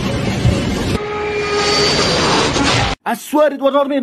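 A jet airliner roars as it lands.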